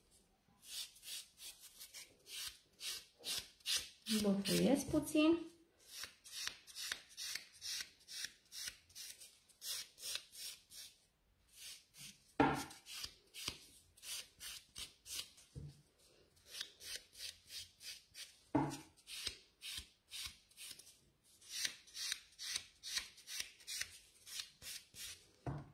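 A nail file rasps quickly back and forth over a fingernail, close up.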